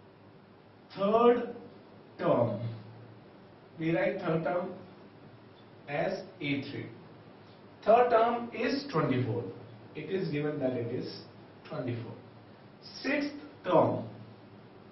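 A man speaks calmly nearby, explaining.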